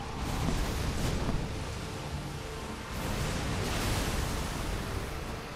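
Magic blasts burst with loud rumbling explosions.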